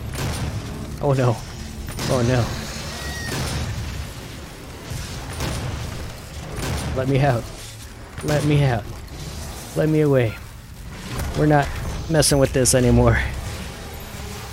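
Monsters roar and snarl close by.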